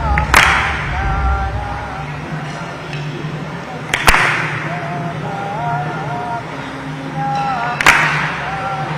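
A group of women sing a slow chant together.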